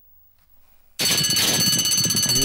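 Starting gates spring open with a loud metallic clang.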